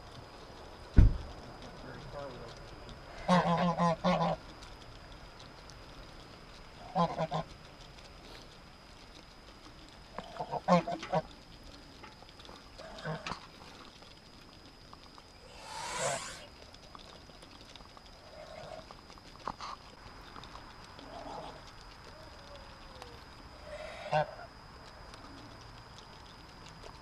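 Ducks peck and dabble at grain on the ground.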